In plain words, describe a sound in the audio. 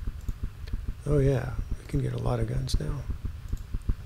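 An older man speaks briefly and calmly into a microphone.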